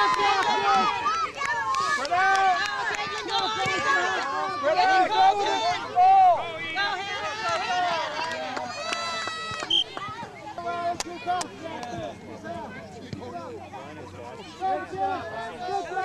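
Spectators and parents cheer and shout outdoors.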